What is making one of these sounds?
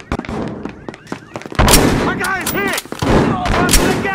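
A rifle fires a single shot.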